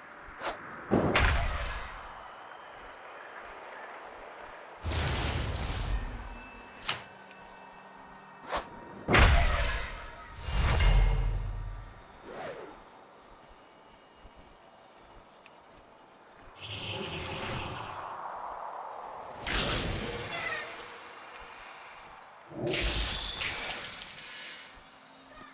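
Magic spells burst with sudden whooshing blasts.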